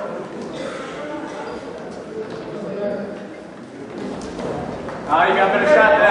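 Spectators chatter quietly in a large echoing hall.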